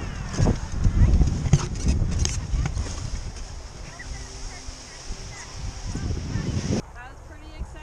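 A paraglider wing's fabric flutters and rustles in gusty wind.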